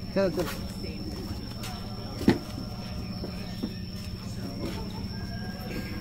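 Footsteps thud on concrete steps as someone climbs.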